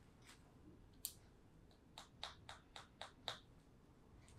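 Fingers tap and scratch sharply on a covered head, close by.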